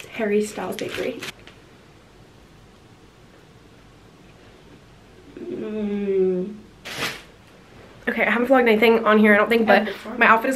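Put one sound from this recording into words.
A young woman talks animatedly close by.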